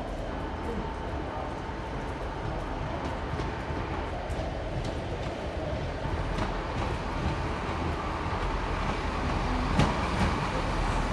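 A diesel train rumbles closer as it pulls in along the tracks.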